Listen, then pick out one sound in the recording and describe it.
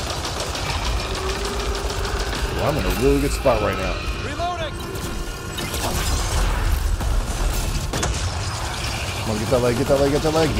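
Gunfire and explosions rumble from a game.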